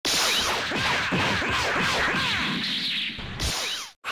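Punches and kicks land with sharp whooshing thuds.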